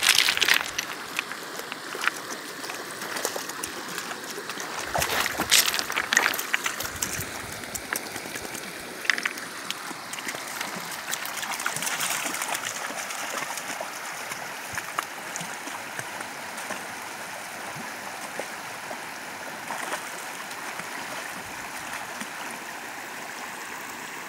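A shallow stream burbles steadily over stones.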